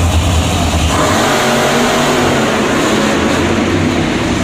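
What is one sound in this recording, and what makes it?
A monster truck crashes down onto crushed cars with a crunch.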